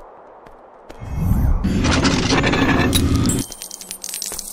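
A magical shimmer whooshes and crackles.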